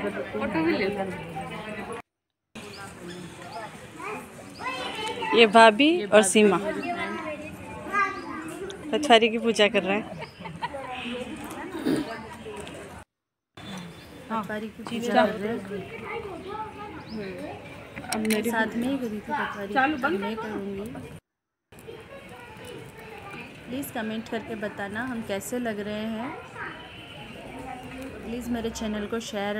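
A woman speaks nearby in a lively voice.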